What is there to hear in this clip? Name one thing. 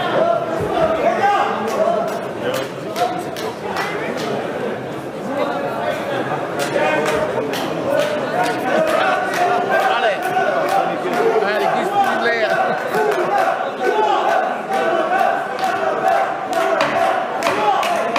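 A crowd of men and women chatters throughout a large echoing hall.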